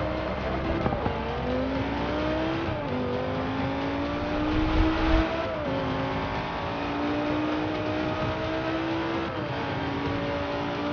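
A racing car engine revs hard, climbing in pitch through each gear and dropping at every shift.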